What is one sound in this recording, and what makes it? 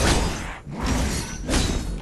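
An explosion booms with a fiery roar.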